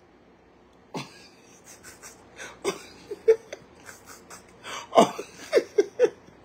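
A middle-aged man laughs softly.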